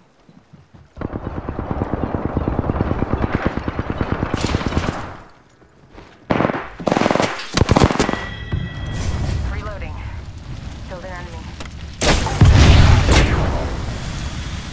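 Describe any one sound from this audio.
An automatic rifle fires in rapid bursts.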